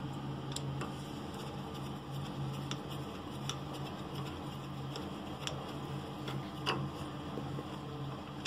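A screwdriver scrapes and clicks against metal.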